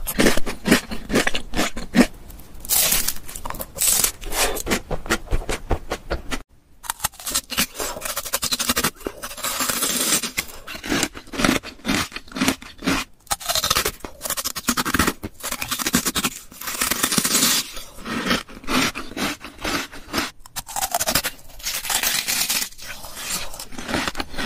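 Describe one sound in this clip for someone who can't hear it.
Lips smack and a mouth chews wetly, very close.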